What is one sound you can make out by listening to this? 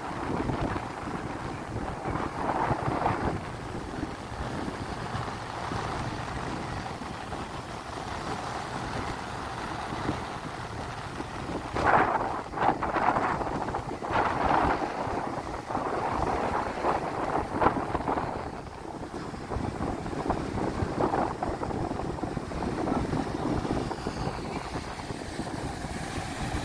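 Waves crash and wash onto the shore nearby.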